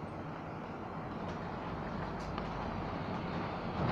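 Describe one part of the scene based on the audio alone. A bus passes close by.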